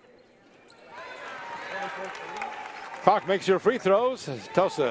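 A crowd cheers and applauds in a large echoing gym.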